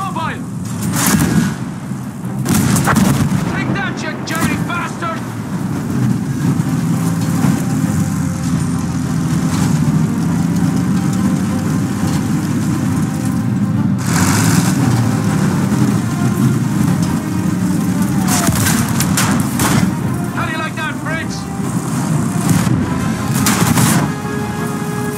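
Heavy cannon shots and explosions boom now and then.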